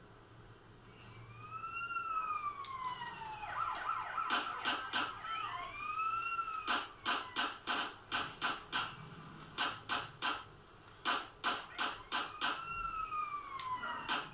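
A police siren wails, rising and falling.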